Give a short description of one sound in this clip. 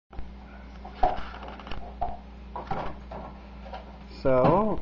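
Dishes clink and clatter.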